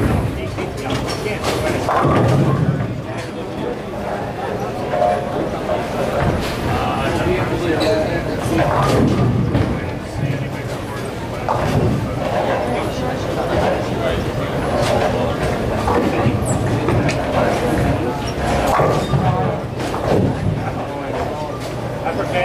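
Bowling pins crash and clatter in a large echoing hall.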